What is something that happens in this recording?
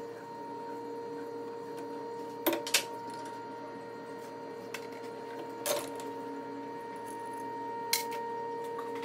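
Metal parts click and knock against each other.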